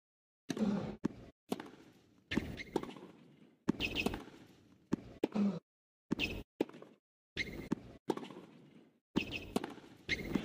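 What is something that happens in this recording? Tennis balls are struck hard with rackets, echoing in a large arena.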